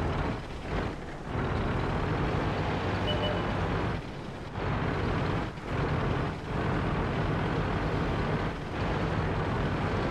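A tank engine rumbles steadily.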